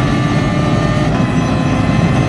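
A gear shift cuts the engine note sharply for a moment.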